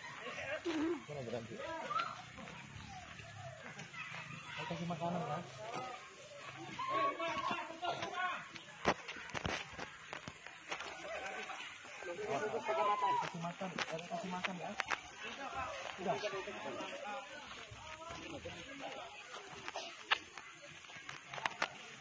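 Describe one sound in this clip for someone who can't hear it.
Men talk and call out excitedly nearby, outdoors.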